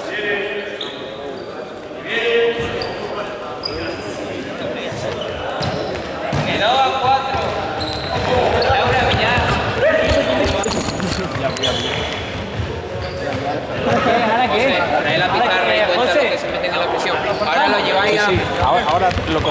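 Trainers squeak on a hall floor as players run.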